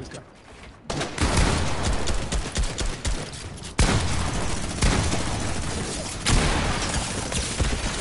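Rapid gunshots crack out close by.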